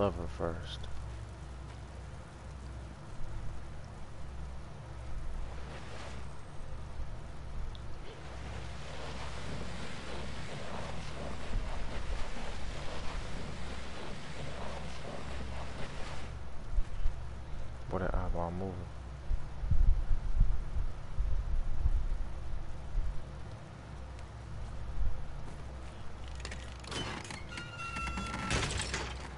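Small footsteps patter on a wooden floor.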